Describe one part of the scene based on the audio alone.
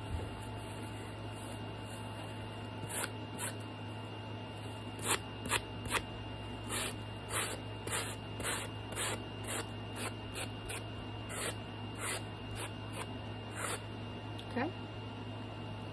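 Paper rustles as a sheet is handled.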